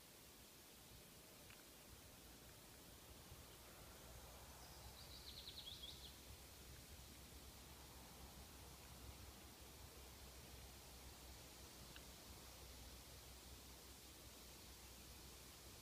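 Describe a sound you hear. Leaves rustle softly in a light wind outdoors.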